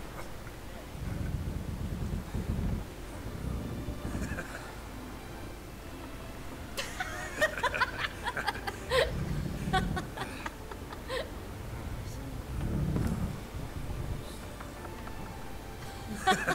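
A woman speaks softly and close by.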